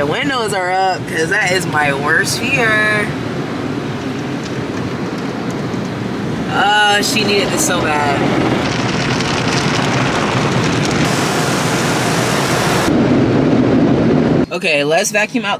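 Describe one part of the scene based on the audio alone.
Water sprays and drums hard against a car's windows.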